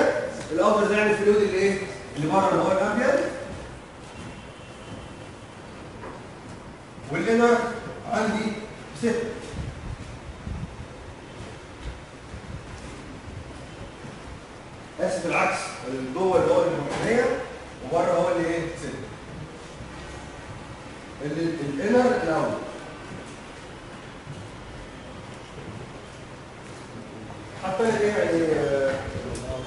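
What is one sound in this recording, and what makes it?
A man speaks calmly in bursts, close by.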